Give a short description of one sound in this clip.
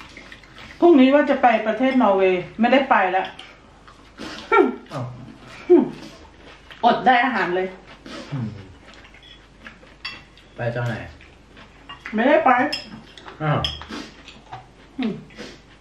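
Cutlery clinks and scrapes on plates.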